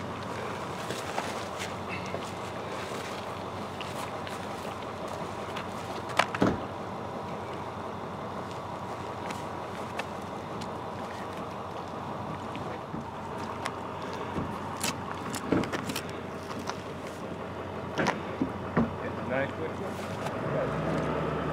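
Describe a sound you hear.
Gear knocks and rustles as a man handles it.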